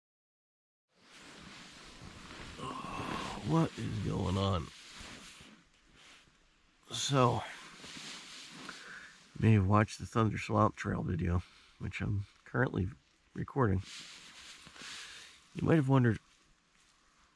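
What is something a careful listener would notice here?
A sleeping bag rustles as a man shifts inside it.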